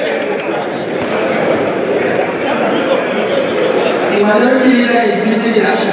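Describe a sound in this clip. A crowd of men talk loudly over one another in a large hall.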